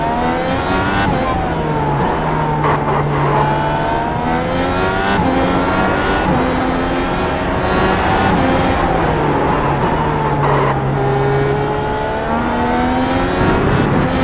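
A racing car engine revs high and whines, rising and falling as gears shift.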